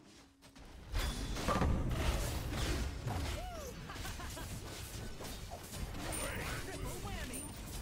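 Game combat effects crackle and clash.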